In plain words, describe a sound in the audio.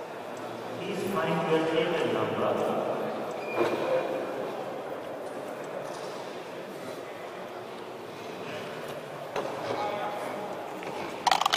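Game checkers click and slide across a wooden board.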